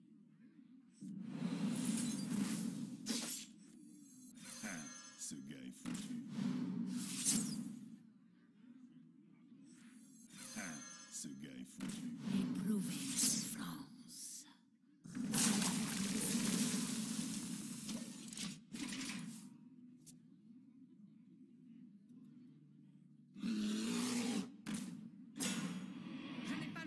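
Fantasy game sound effects whoosh, chime and crash in bursts.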